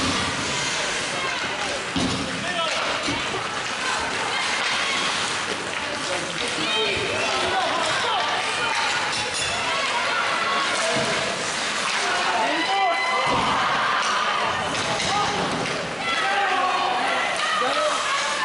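Ice skates scrape and swish across an ice rink.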